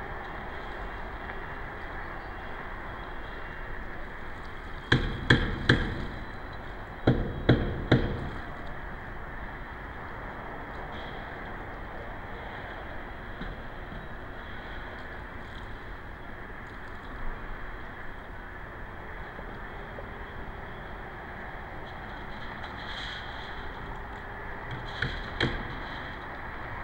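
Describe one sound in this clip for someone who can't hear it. Calm water laps softly.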